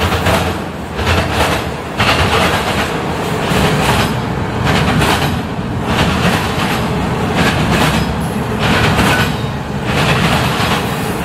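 A freight train rumbles past close by, its wheels clattering rhythmically over the rails.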